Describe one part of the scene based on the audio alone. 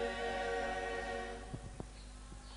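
A choir of women and men sings together through a microphone, then stops.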